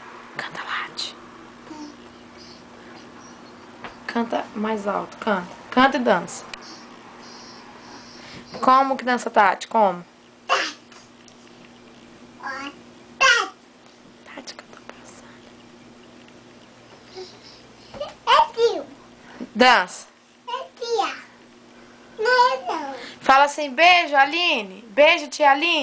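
A toddler girl babbles and talks close by.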